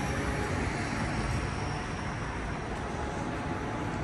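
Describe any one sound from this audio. Light traffic hums steadily on a nearby street outdoors.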